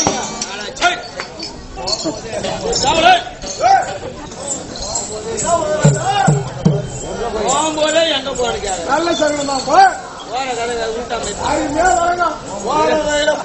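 A man sings loudly through a microphone with a strained, theatrical voice.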